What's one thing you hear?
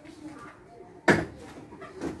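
A heavy metal box thuds down onto a hard floor.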